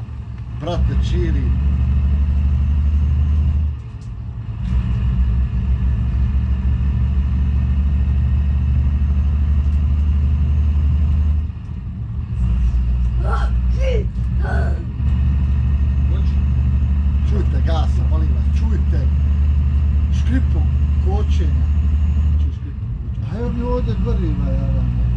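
A truck engine drones steadily, dipping briefly now and then.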